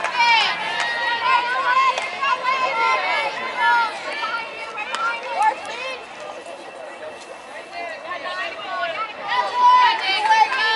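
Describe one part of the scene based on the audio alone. Young women shout and cheer across an open field.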